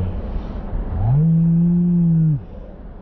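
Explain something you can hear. A boat engine roars, rising in pitch and then cutting off.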